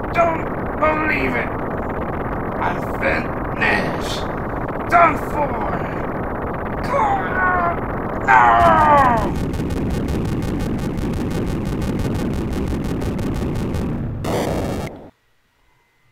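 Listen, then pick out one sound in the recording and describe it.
Music from a 16-bit console video game plays.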